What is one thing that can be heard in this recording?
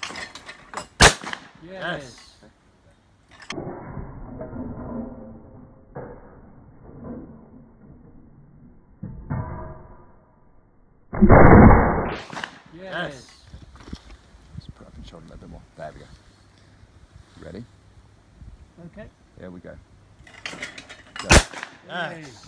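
A shotgun fires with a sharp bang outdoors.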